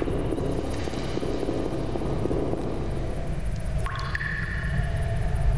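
Footsteps echo on a stone floor in a large hall.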